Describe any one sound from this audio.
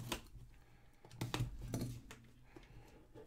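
A blade slices through plastic wrap.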